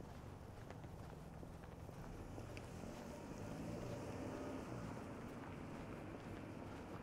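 A car drives slowly along a quiet street, its engine humming low.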